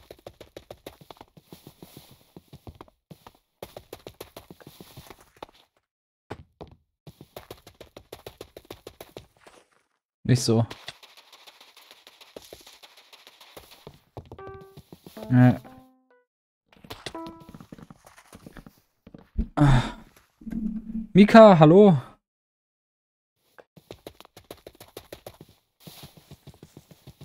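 Quick footsteps patter on grass and dirt while running.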